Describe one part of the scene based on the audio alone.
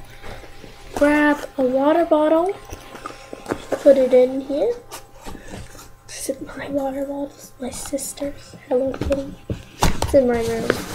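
A girl sings in a high voice.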